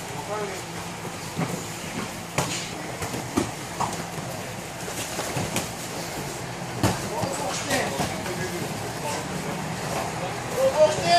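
Bare feet thump and shuffle on a mat.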